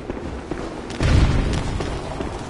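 A heavy impact thuds loudly.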